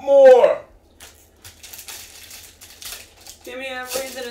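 Foil wrappers crinkle and tear as a pack is opened.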